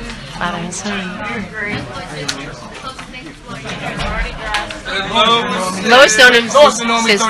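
Men talk loudly and excitedly over one another close by, in a noisy crowd.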